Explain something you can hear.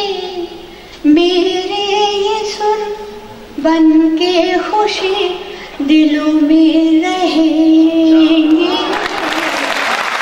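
An elderly woman sings into a microphone in a long, sustained melody.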